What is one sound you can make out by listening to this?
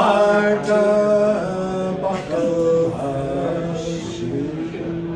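A woman sings in long, held notes nearby.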